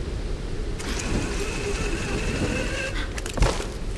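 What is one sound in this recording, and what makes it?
A pulley whirs along a taut rope.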